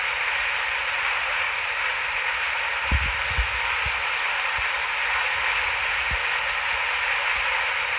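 Jet engines roar steadily as an airliner rolls down a runway.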